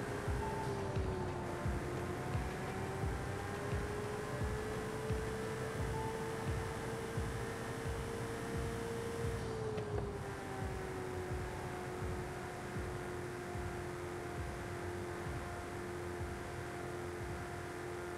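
A sports car engine hums steadily at speed, dropping in pitch after a gear change.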